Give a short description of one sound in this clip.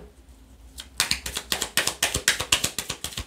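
A deck of cards is shuffled with quick, rapid riffling.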